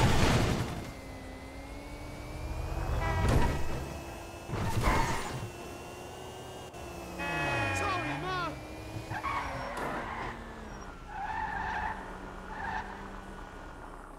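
A car engine hums as the car drives along.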